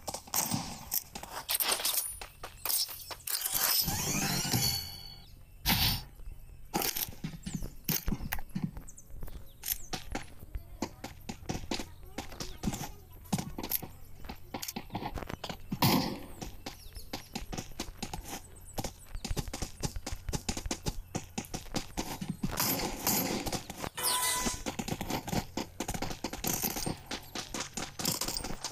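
Quick footsteps patter on hard ground as a figure runs.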